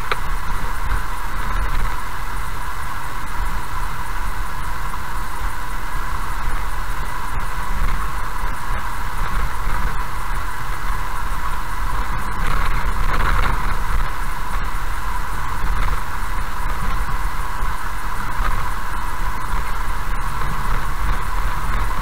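Tyres rumble steadily on a gravel road.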